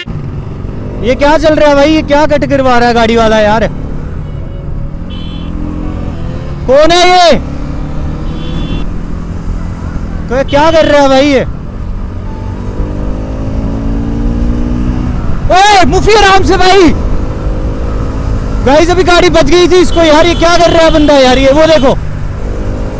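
A motorcycle engine revs loudly in repeated bursts.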